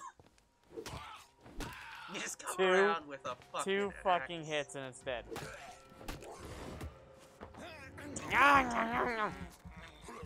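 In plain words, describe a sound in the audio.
Heavy blows and thuds land in a scuffle.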